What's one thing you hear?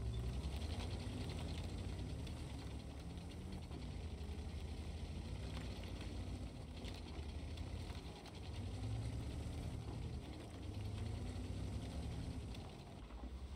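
A heavy tank engine rumbles deeply and steadily.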